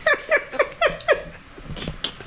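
A young woman laughs in short bursts close by.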